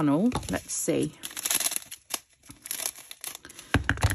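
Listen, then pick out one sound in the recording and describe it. Scissors snip through a plastic packet.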